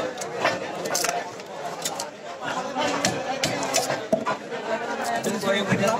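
Scissors snip through fish.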